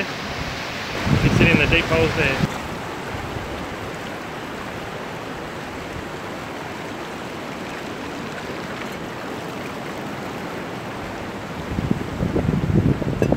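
Wind blows against a microphone in gusts.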